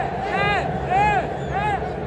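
A man sings and shouts loudly close by.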